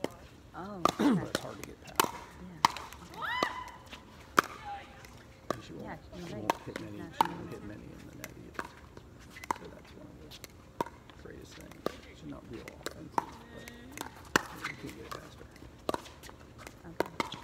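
A plastic ball bounces on a hard court.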